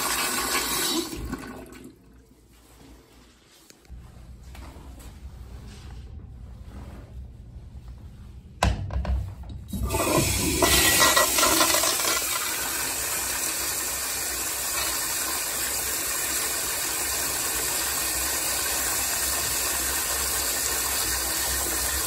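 A toilet flushes with loud rushing, swirling water.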